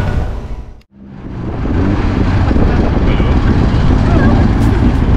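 A small motor taxi's engine rumbles as it drives along a street.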